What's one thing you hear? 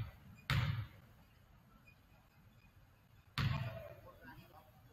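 A basketball thuds on a wooden floor, echoing through a large hall.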